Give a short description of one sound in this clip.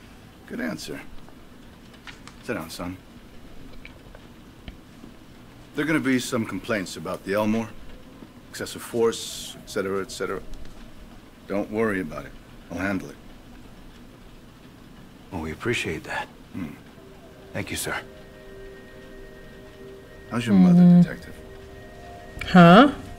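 A middle-aged man speaks calmly and firmly up close.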